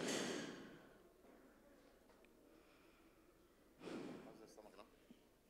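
A man speaks loudly into a microphone in a large echoing hall.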